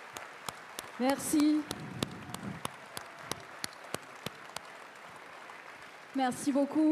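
A woman speaks loudly into a microphone over loudspeakers.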